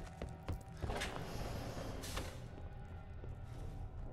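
A heavy sliding metal door hisses open.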